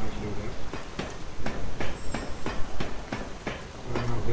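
Footsteps clank rhythmically on a metal ladder.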